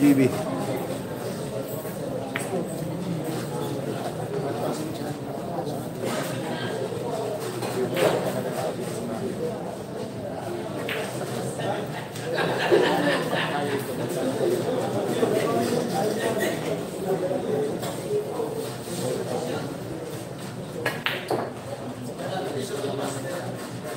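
A crowd of young men murmurs and chatters nearby.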